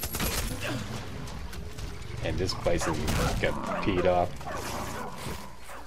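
A bear roars and growls close by.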